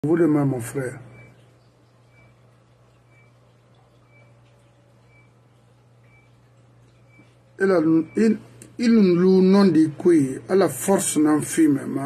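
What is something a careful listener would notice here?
An elderly man speaks with animation close to a microphone.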